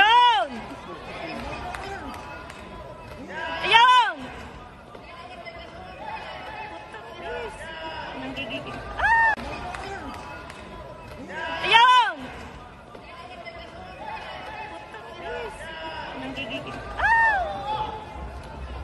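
Spectators call out in loud, rising and falling shouts.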